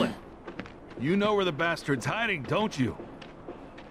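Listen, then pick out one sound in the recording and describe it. A man speaks aggressively and demands an answer.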